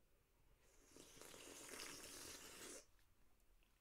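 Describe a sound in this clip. A man gulps down a drink from a can.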